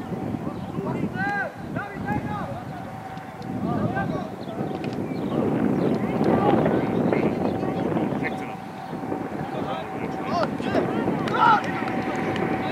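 Teenage boys shout to each other across an outdoor football pitch.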